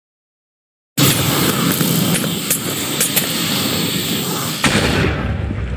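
A burst of explosions booms and crackles.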